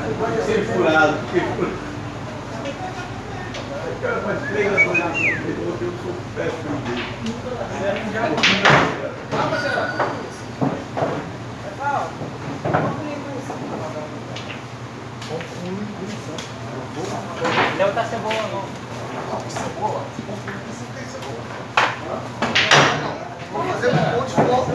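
Men talk and call out loudly.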